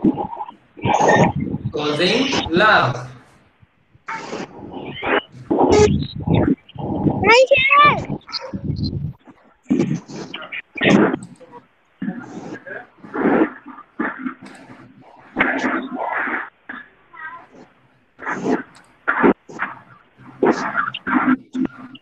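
A young boy speaks through an online call.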